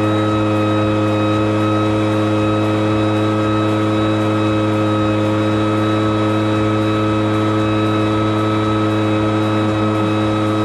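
Air from a leaf blower rushes over grass.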